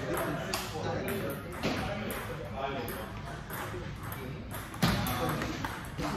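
A ping pong ball clicks back and forth off paddles and a table in a quick rally.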